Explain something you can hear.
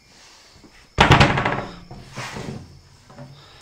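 A circular saw whirs briefly.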